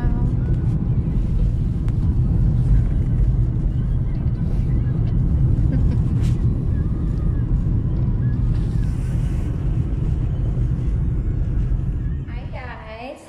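A car engine rumbles low and steady while driving.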